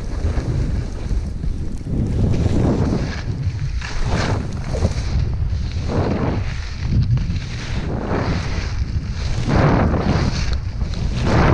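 Skis hiss and scrape over snow in repeated swooshes.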